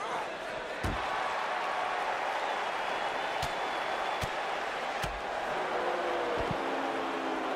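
Heavy blows and body slams thud now and then.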